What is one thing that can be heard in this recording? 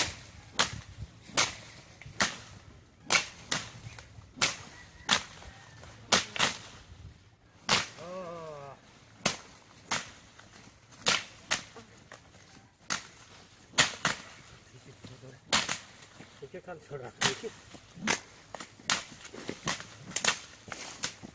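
Sticks swish and thrash through leafy plants again and again.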